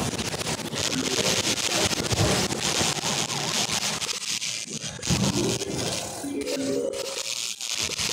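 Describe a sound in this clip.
Short melodic game chimes play.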